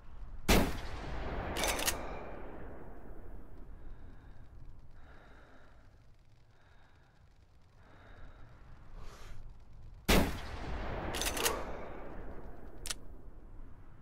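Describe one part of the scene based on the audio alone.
A rifle fires loud shots that echo and roll away across the mountains.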